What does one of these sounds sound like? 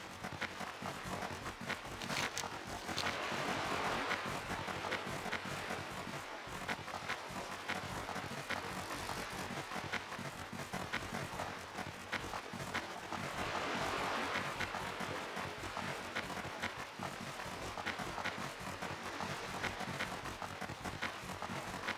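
A large creature's footsteps thud steadily on dry ground.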